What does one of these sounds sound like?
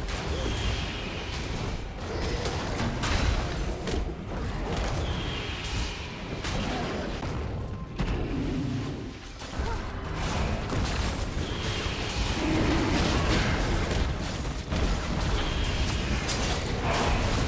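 Game spell effects crackle and whoosh in quick bursts.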